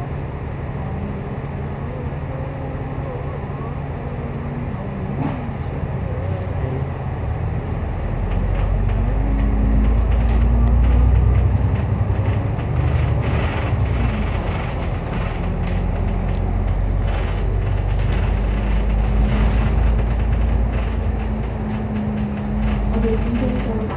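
A bus engine rumbles steadily, growing louder as it speeds up.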